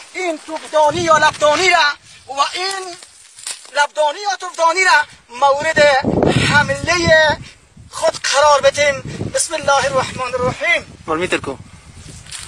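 A man speaks loudly and with animation close by, outdoors.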